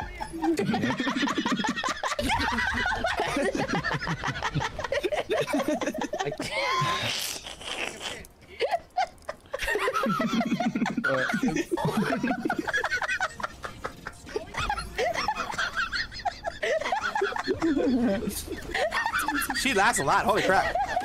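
A young woman laughs loudly and shrilly into a microphone.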